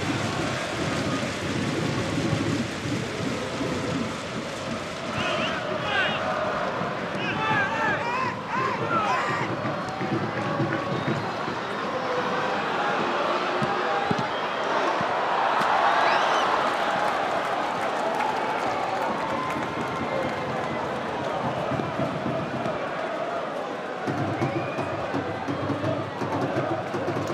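A large crowd chants and roars steadily in an open stadium.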